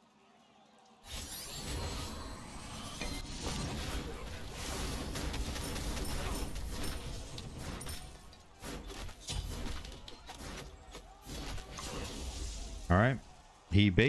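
Game spells and fighting sounds crash and whoosh.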